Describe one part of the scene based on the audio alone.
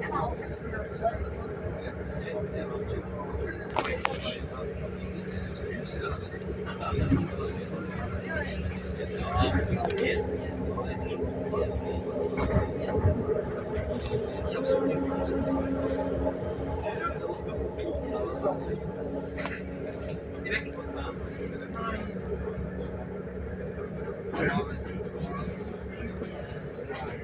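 Train wheels clatter and knock over rail joints.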